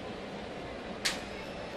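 A baseball smacks into a catcher's mitt.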